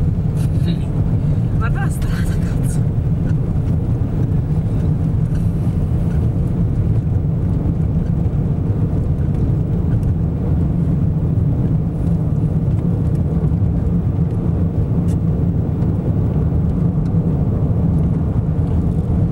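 Sand and grit patter against a car's windshield.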